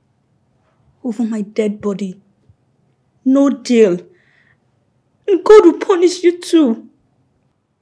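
A young woman speaks with alarm, pleading close by.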